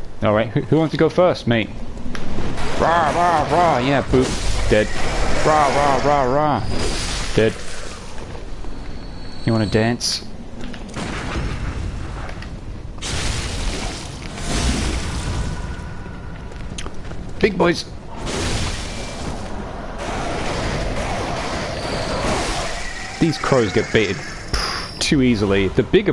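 Heavy weapon blows land with sharp, wet thuds.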